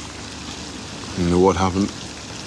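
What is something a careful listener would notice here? A man speaks quietly to a woman.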